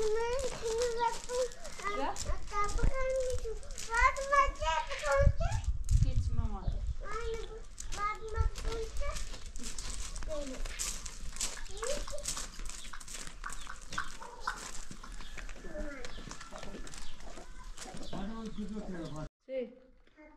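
A young girl talks with animation nearby.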